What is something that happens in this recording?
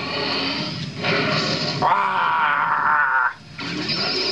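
Energy beams blast with a rushing roar.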